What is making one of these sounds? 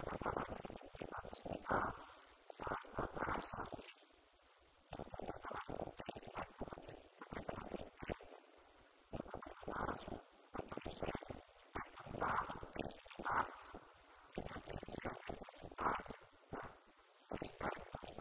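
An elderly man speaks with animation into a microphone, heard through a loudspeaker.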